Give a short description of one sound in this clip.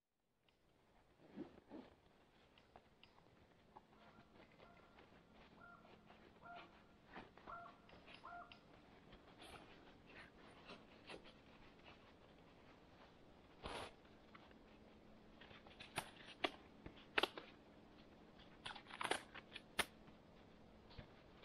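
Fabric and cord rustle and snap close by.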